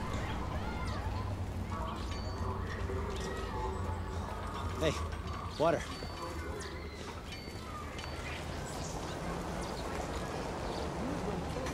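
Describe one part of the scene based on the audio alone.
Footsteps walk on a paved path.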